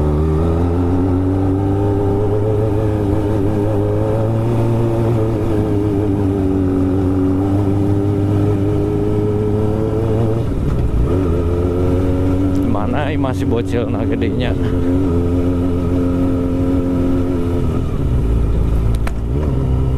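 A motorcycle engine hums steadily close by, its pitch rising and falling with the throttle.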